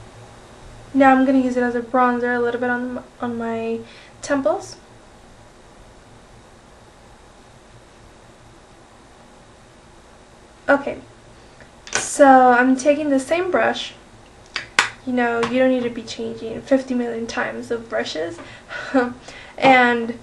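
A young woman talks casually and close up.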